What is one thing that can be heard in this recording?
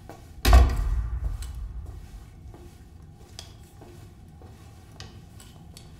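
Footsteps echo across a hard floor in a large room.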